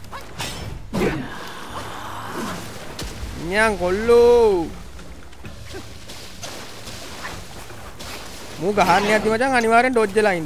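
Water splashes heavily.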